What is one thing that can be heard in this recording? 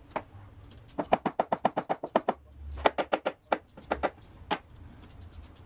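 A ratchet wrench clicks in quick bursts.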